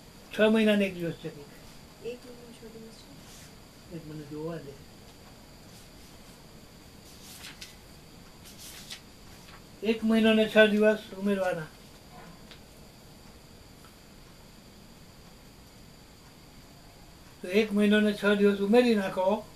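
An elderly man speaks loudly close by, in short bursts.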